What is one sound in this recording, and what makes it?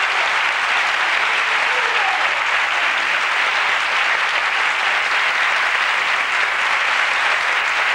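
A large audience applauds steadily.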